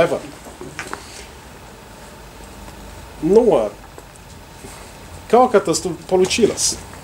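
A middle-aged man speaks calmly, with pauses.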